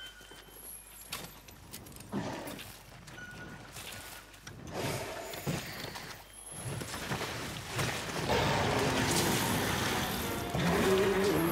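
Heavy blows thud and clash against a huge beast.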